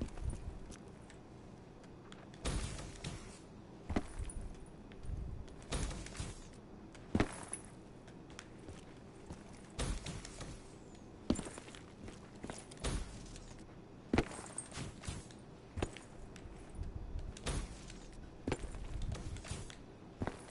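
Footsteps thud on a hard floor at a quick pace.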